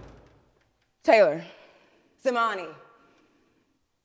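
A young woman speaks in short, tense phrases close by.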